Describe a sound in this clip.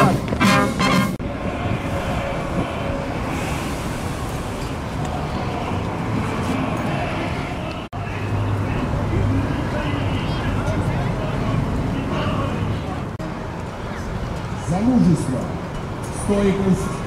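A large outdoor crowd murmurs steadily in the open air.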